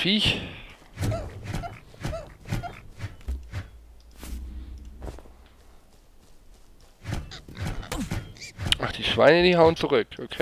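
A sword swishes through the air and thuds into a small creature.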